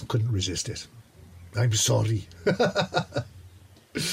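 A middle-aged man laughs close by.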